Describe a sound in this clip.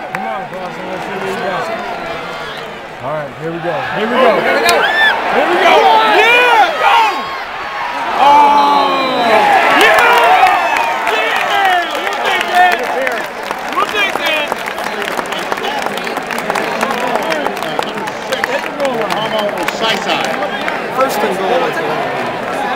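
A huge stadium crowd cheers and roars loudly around the listener, swelling then settling.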